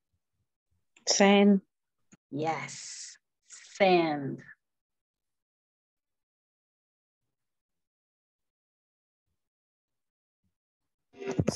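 A young man speaks clearly over an online call, pronouncing single words with pauses between them.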